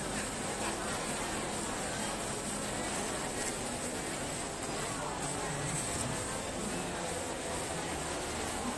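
A crowd chatters all around in a steady murmur.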